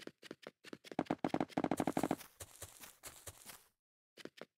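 Blocks snap into place one after another with short clicks.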